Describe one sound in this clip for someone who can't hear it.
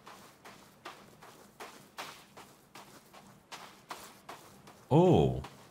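Footsteps crunch quickly on sand.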